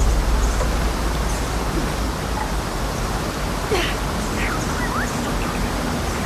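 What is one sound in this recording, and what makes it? A waterfall roars steadily close by.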